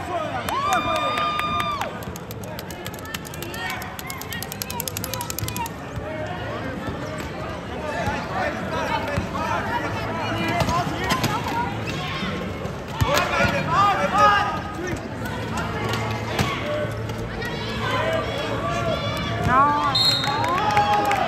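Players and spectators shout and chatter in a large echoing hall.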